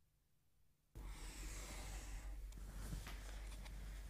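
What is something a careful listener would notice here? A marker pen scratches along a ruler.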